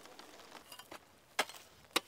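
A rake scrapes across dry stubble.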